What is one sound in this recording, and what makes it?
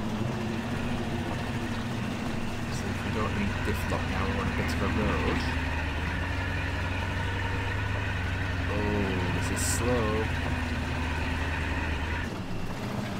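A truck engine drones steadily at low revs.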